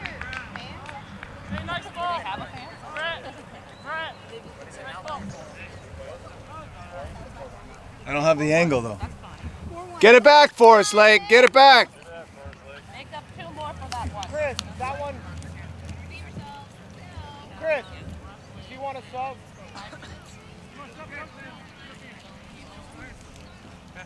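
Young men shout to each other outdoors, some loudly and close by.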